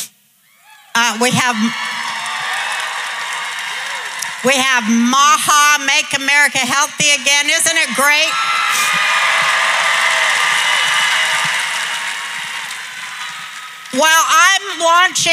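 A middle-aged woman speaks with animation into a microphone in a large hall.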